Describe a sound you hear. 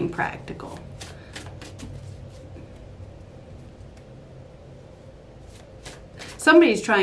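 Playing cards riffle and flick in a woman's hands.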